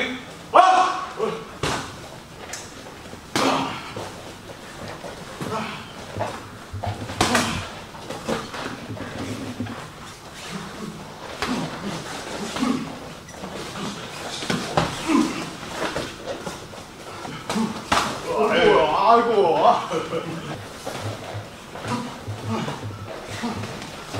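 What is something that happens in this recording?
Gloved punches and kicks thud against pads and bodies.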